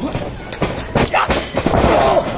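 A wrestler's body thuds onto a ring mat.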